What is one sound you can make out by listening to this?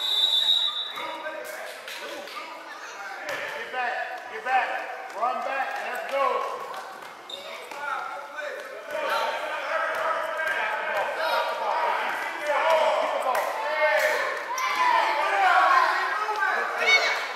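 Children shout and chatter, echoing in a large hall.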